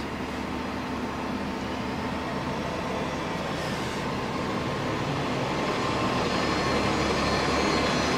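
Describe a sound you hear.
Tyres hiss on pavement.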